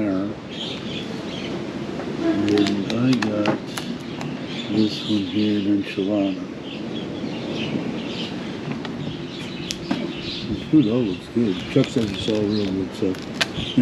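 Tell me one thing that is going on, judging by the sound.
Stiff plastic menu pages flip and rustle close by.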